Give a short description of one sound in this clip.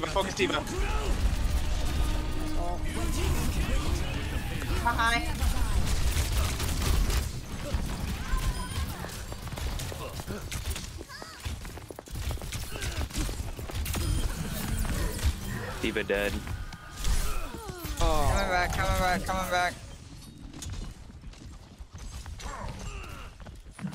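Game weapons fire in rapid bursts with sharp bangs.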